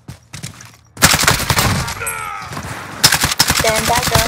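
A rifle fires in loud, rapid bursts.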